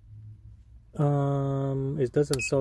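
A multimeter beeps with a steady tone.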